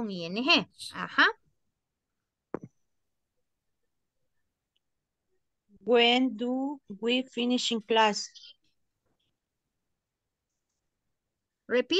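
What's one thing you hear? A woman speaks through an online call, in short bursts with pauses.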